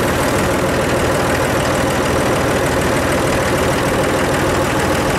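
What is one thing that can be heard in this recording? Tractor tyres roll over gravel.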